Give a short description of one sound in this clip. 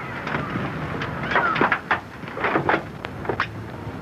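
A building collapses with a rumbling crash of rubble.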